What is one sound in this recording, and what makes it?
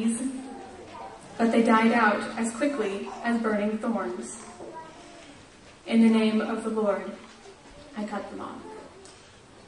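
A middle-aged man reads out through a microphone.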